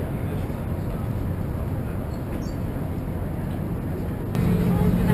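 Heavy city traffic rumbles steadily, outdoors.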